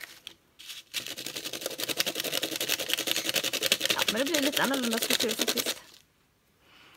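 A pencil scratches rapidly across paper.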